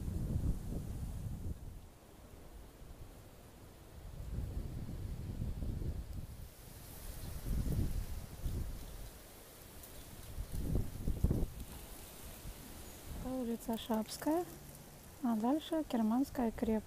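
Wind gusts rumble outdoors.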